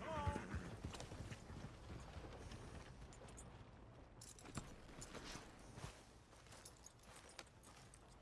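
A horse's hooves clop on dirt.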